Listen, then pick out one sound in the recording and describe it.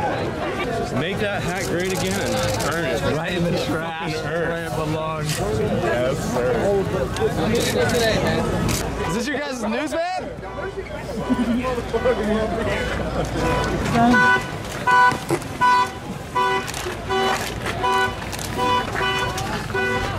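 A crowd of men and women talks and shouts nearby.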